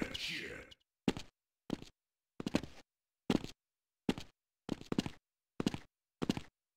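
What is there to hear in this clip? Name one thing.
Footsteps thud on a hard floor at an even pace.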